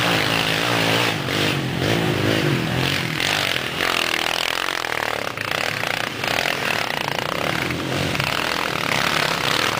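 A dirt bike engine revs loudly as it climbs a steep slope.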